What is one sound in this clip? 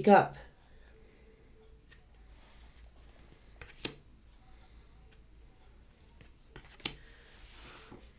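Cards shuffle and tap on a table.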